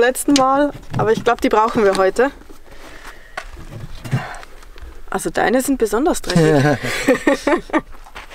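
Boots thump and rustle as they are handled.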